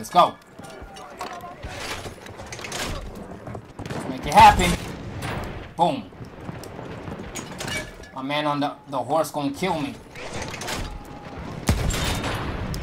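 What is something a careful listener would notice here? A field gun fires with loud booms.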